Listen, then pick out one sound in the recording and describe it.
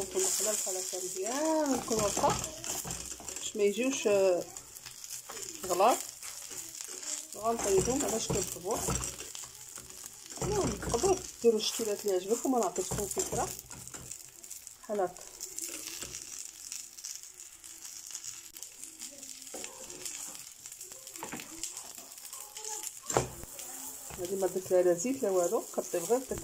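Dough sizzles softly in a hot pan.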